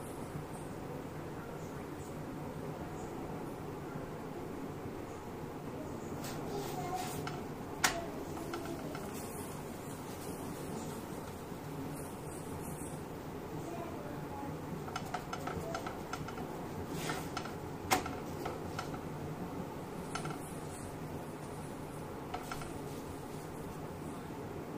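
A flatbread sizzles faintly on a hot griddle.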